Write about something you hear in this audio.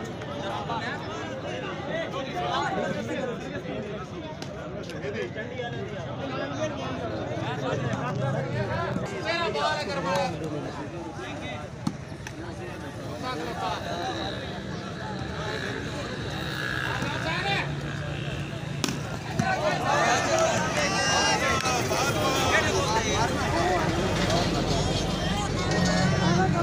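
Men nearby shout to each other.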